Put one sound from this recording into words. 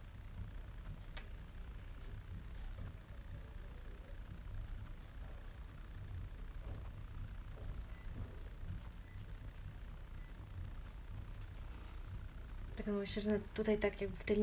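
A pastel stick scratches softly on paper.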